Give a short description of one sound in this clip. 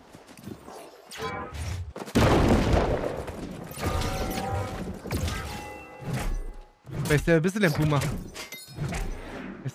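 A magic spell whooshes and crackles.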